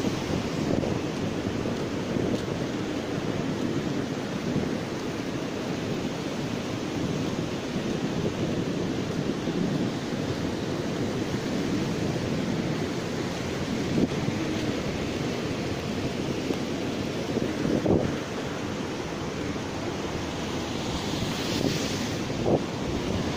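Wind blows over the microphone outdoors.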